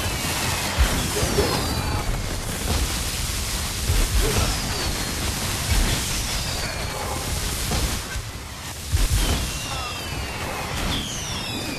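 Magic effects whoosh and chime with falling pitched tones.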